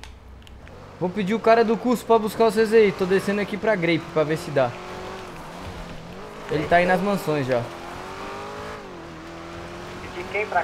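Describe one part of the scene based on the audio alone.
A car engine revs and accelerates.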